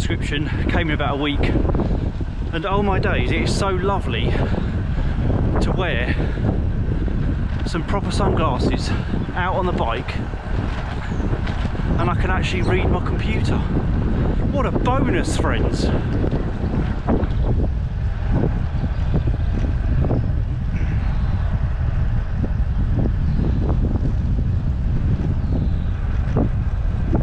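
Wind rumbles loudly against a microphone outdoors.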